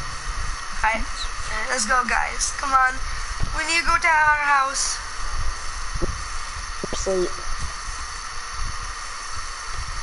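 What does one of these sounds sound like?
A torch flame burns with a soft crackle.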